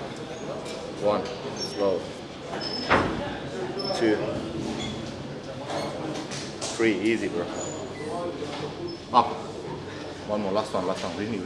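A man talks with animation close by, urging someone on.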